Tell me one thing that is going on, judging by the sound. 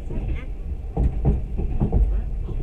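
A passing freight train roars by close alongside.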